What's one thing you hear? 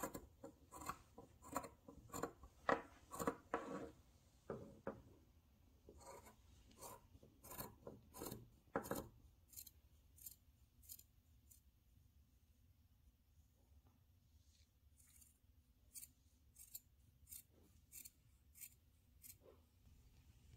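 Scissors snip through cloth in short, repeated cuts.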